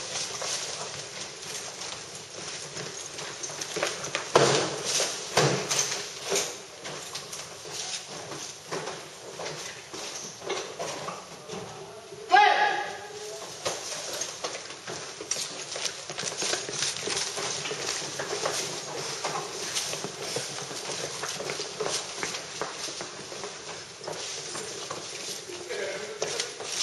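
Boots shuffle and scrape on a hard floor.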